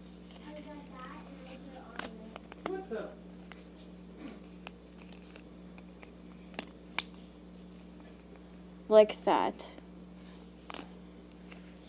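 Paper rustles and creases as it is folded by hand.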